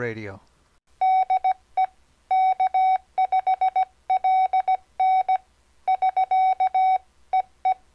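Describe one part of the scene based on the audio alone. Morse code beeps in short and long bursts of a steady high tone.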